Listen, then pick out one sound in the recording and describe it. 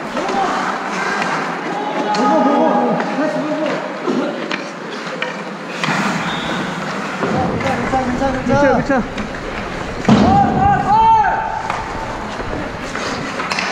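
Hockey sticks tap and clack on the ice.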